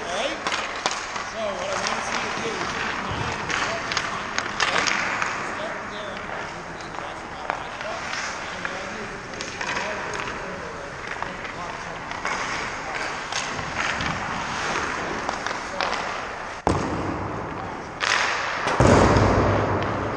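Hockey sticks clack against pucks and ice.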